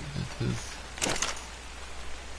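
A game menu opens with a soft whooshing chime.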